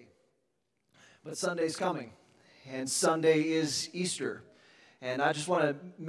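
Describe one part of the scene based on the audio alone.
A man speaks to an audience through a microphone in a large room.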